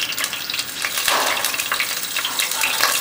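Food drops into hot oil with a burst of sizzling.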